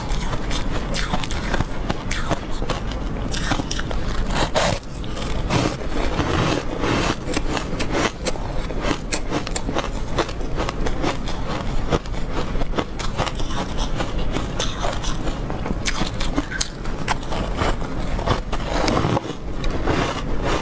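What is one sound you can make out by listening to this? A young woman crunches and chews icy food close to a microphone.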